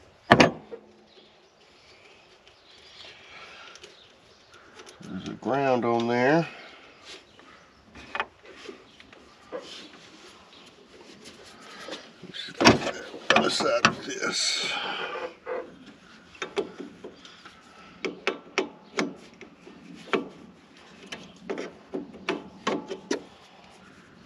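Metal tools click and clink against engine parts close by.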